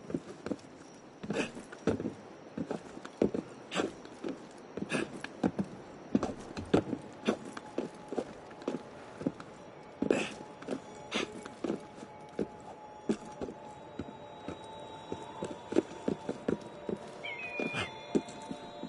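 Hands and boots scrape and thud against stone in a quick climbing rhythm.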